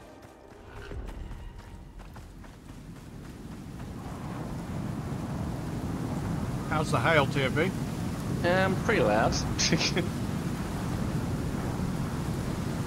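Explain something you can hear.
A storm of wind and hail roars outdoors, growing steadily louder.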